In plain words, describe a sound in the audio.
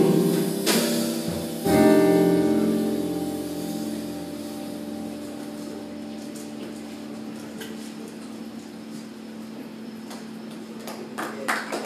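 An electric keyboard plays sustained chords that fade away.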